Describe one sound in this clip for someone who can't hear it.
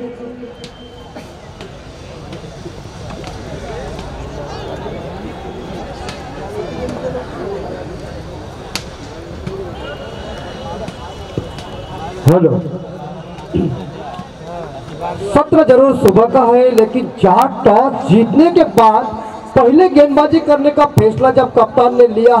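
A crowd of young men chatters outdoors.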